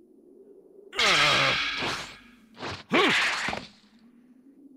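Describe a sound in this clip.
A man grunts and shouts with effort.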